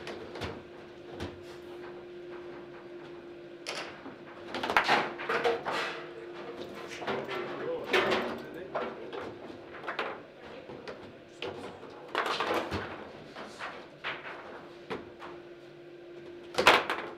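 A plastic ball clacks and rattles against foosball figures and walls.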